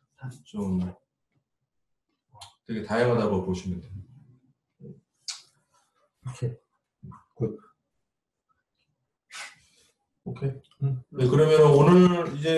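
A young man talks in short bursts, close by.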